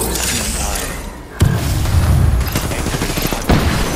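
An electronic drone buzzes and powers up with a burst.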